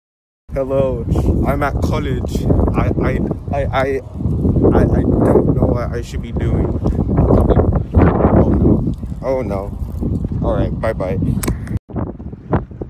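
A young man talks with animation close to a phone microphone, outdoors in wind.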